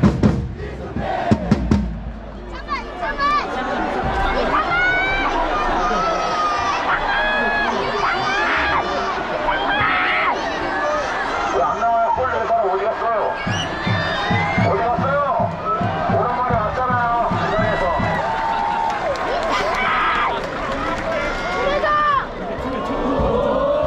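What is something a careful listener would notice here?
A large crowd of fans sings and chants loudly across an open stadium.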